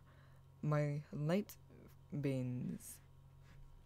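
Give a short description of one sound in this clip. A young man speaks briefly with animation, close to a microphone.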